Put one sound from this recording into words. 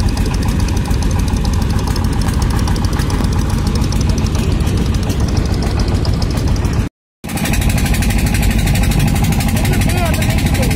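A boat engine chugs steadily nearby.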